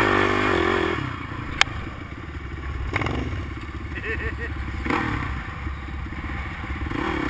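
A quad bike engine idles nearby with a low rumble.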